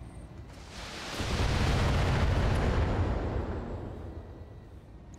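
A blast roars and hisses.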